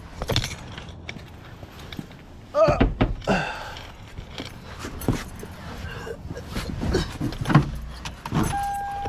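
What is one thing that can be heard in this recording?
A car door opens and shuts with knocks and thuds.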